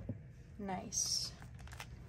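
Paper rustles as a sticker is peeled.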